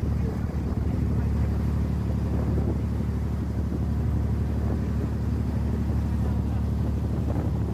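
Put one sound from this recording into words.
Water churns and splashes along the side of a moving boat.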